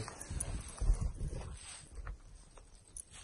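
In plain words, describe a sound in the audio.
A dog bounds through deep snow with a soft, close rustling.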